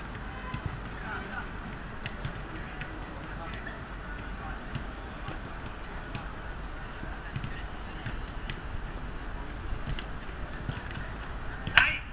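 Footballs thud as players kick them.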